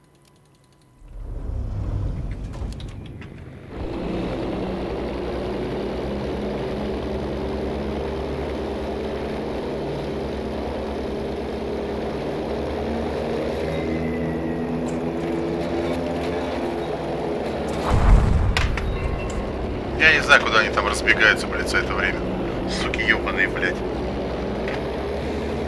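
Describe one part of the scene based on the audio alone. Aircraft engines drone steadily and loudly.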